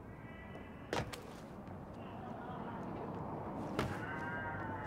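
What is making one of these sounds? A heavy thud sounds as someone lands from a jump.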